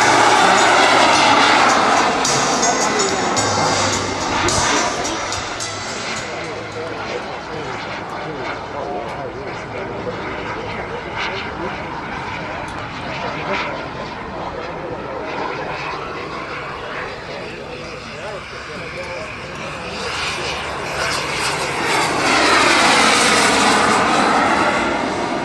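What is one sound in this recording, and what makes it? A jet plane roars overhead, fading into the distance and then swelling loudly as it sweeps past again.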